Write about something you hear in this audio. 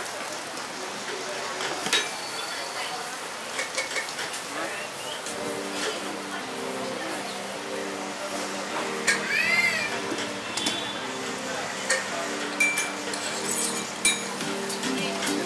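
Metal utensils clink and scrape against pots.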